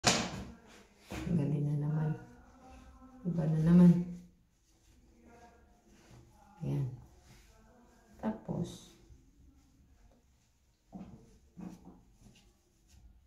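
A knit scarf rustles softly as a woman wraps it.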